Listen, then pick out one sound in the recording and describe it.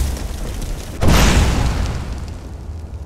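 A fire spell bursts out with a loud whoosh.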